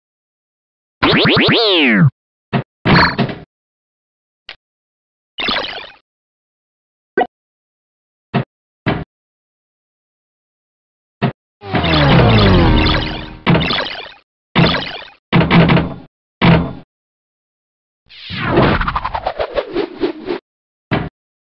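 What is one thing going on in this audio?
Falling electronic tones sweep down as bonuses are awarded.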